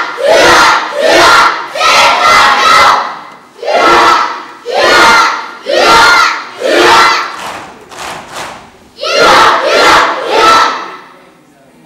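A group of children shout together loudly in unison.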